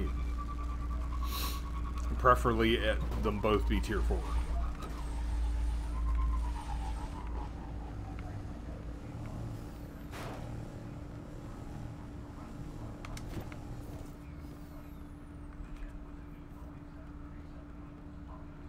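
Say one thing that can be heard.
A hovering bike's engine hums steadily.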